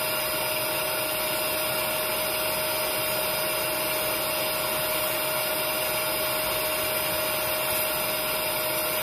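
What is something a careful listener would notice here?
A vacuum motor whines steadily while sucking at fabric upholstery.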